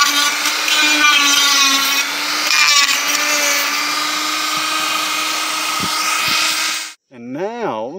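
A rotary tool whirs steadily as it grinds into wood.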